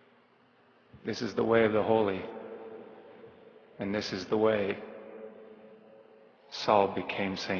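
A man speaks slowly and earnestly into a microphone in a large echoing hall.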